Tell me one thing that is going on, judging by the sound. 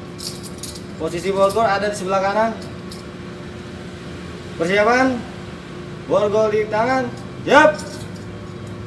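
A man sings out loudly close by in short bursts.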